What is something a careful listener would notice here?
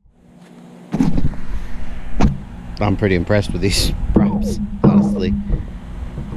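A man talks with animation, close up.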